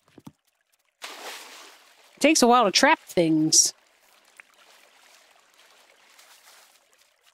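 Water splashes softly as a net sweeps through it.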